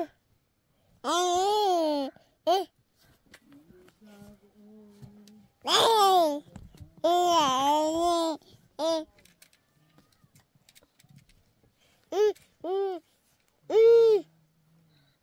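A toddler babbles and squeals in a high voice close by.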